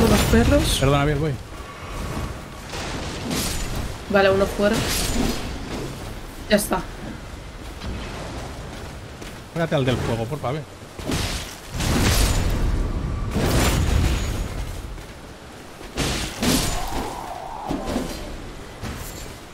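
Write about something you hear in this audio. A man talks animatedly into a close microphone.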